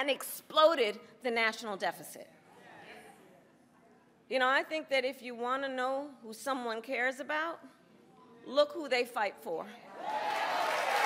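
A woman speaks with emphasis into a microphone, heard through loudspeakers.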